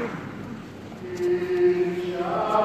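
Voices sing through loudspeakers in a large echoing hall.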